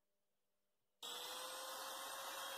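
A power tool whirs loudly.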